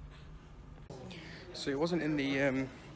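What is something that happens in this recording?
A young man speaks loudly and with animation close to the microphone.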